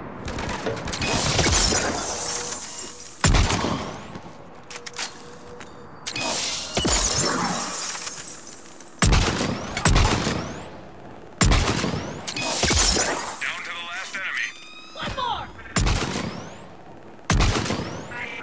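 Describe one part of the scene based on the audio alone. Sniper rifle shots crack loudly, each followed by a booming echo.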